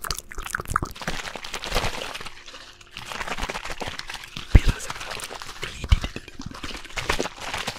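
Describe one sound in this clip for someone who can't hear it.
Soft fabric rustles and brushes close to a microphone.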